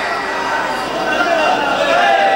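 Men's voices swell in a louder group cry.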